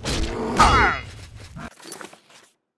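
A large beast growls and roars close by.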